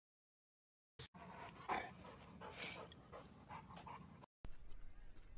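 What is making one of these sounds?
A large dog growls low and close.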